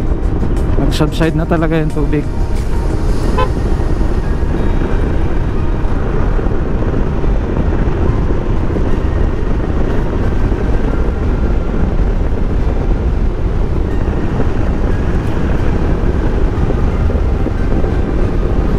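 A scooter engine hums steadily underneath.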